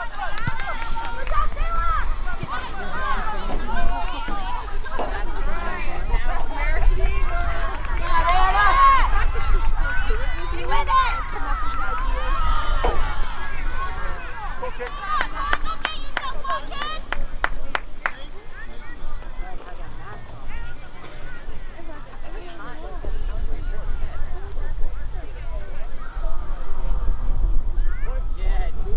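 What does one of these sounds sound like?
Spectators and players shout and cheer outdoors across a field.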